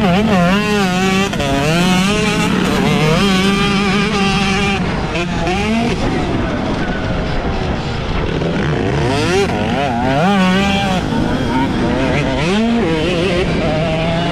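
Other dirt bike engines buzz nearby.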